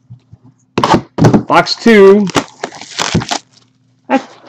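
Plastic wrap crinkles and tears as a box is unwrapped.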